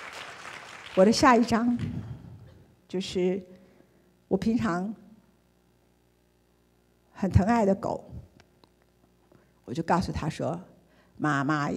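A woman speaks calmly through a microphone in a large hall, in short phrases with pauses.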